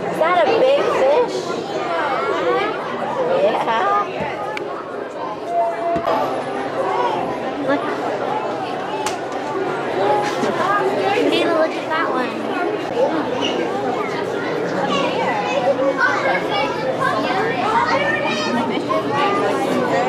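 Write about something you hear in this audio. A crowd of adults and children chatter all around in an echoing hall.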